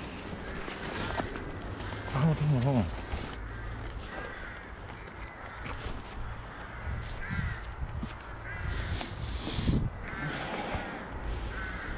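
Wheels crunch slowly over dirt and small stones.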